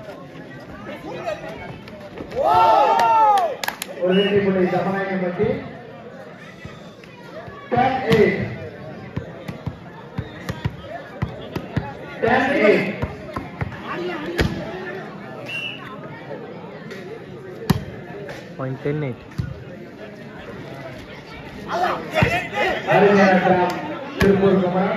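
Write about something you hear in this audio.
A crowd of men cheers and shouts loudly outdoors.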